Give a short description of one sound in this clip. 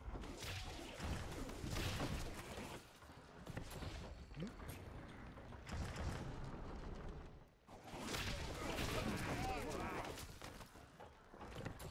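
Weapons clash as two armies fight.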